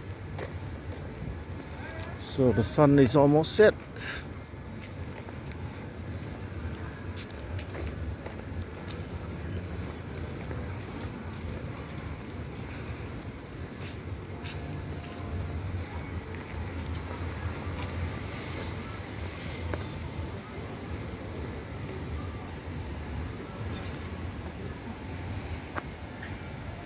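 Footsteps tap on stone paving outdoors.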